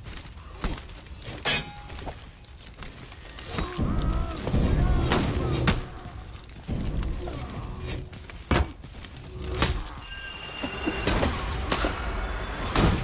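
Metal weapons clash and strike in a fight.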